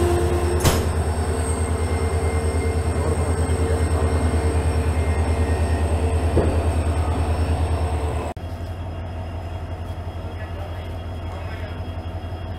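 A diesel locomotive engine throbs steadily close by.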